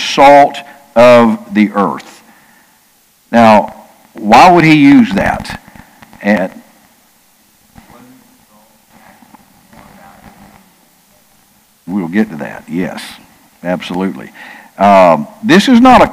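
An older man speaks calmly and with expression through a microphone, pausing between phrases.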